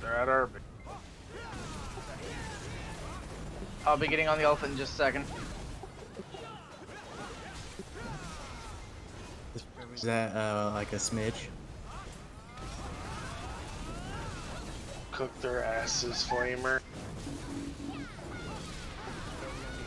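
Swords clash and magic blasts boom in a fight.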